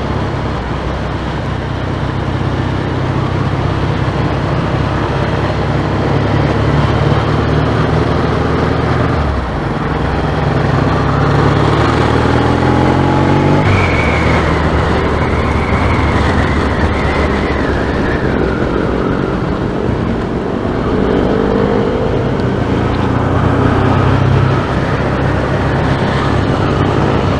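Wind buffets loudly past the rider.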